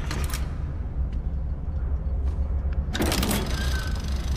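A heavy lever clanks as it is pulled.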